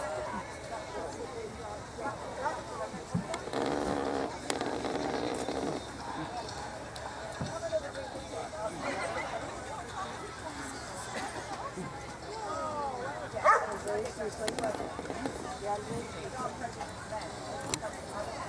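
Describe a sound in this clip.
Several women and men talk at once outdoors.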